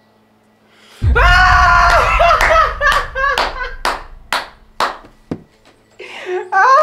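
A young man bursts out laughing loudly, close by.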